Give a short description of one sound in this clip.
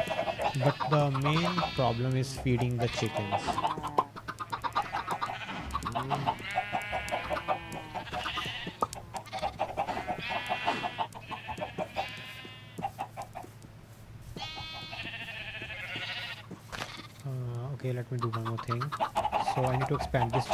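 Chickens cluck.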